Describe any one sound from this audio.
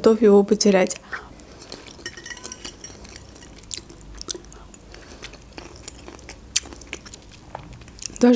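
A young woman chews food with soft, wet mouth sounds.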